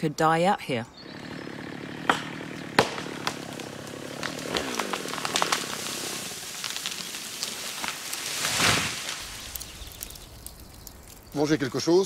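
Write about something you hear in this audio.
A chainsaw runs.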